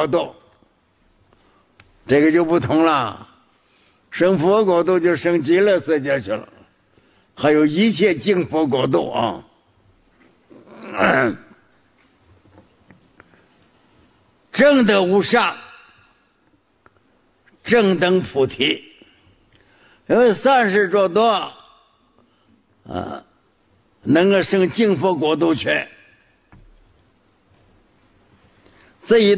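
An elderly man speaks slowly and calmly into a microphone, in short phrases with pauses between them.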